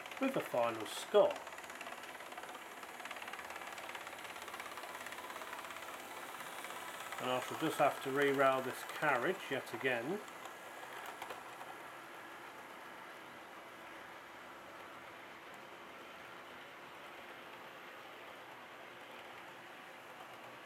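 A model train rolls past on the tracks with a soft rumble.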